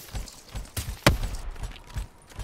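A rifle fires a shot.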